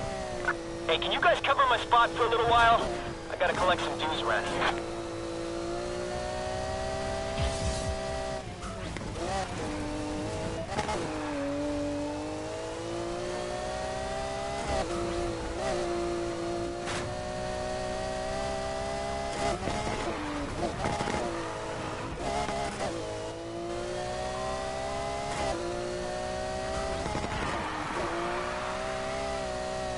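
A sports car engine roars loudly, revving up and down as gears shift.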